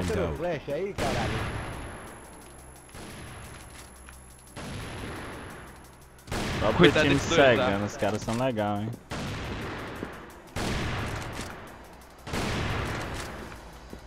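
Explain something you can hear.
A sniper rifle fires loud single shots that echo and fade.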